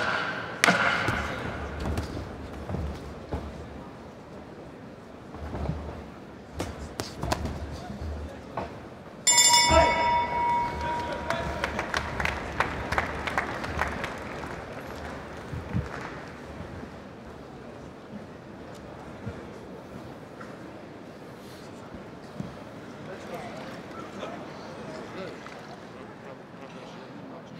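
A large crowd cheers and murmurs in an echoing hall.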